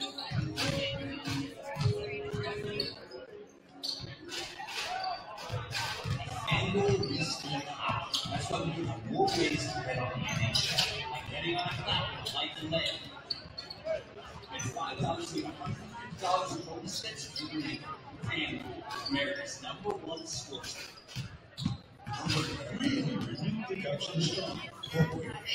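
Basketballs bounce repeatedly on a hardwood floor in a large echoing gym.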